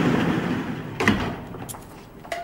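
A heavy metal gate clangs shut with a ringing echo.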